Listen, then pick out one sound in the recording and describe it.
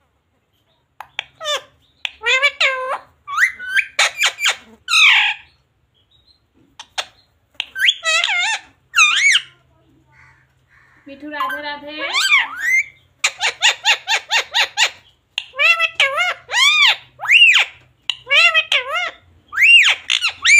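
A parrot squawks and chatters in loud, shrill bursts close by.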